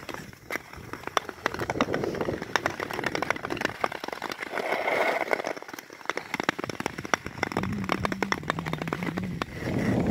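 Skate blades scrape and tick across thin ice outdoors.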